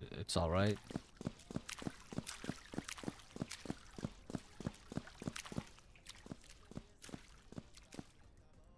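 Footsteps crunch quickly on gravel and grass.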